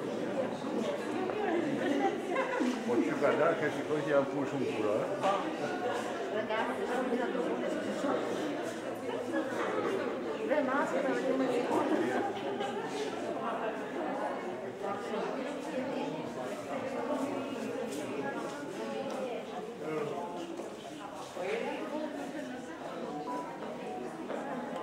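Many people chatter in an echoing room.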